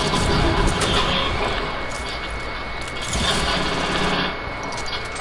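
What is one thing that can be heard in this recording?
Video game gunshots and impacts crack in quick bursts.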